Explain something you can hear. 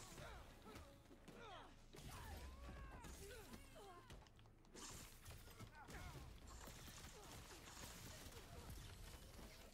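Punches and blows thud in a video game fight.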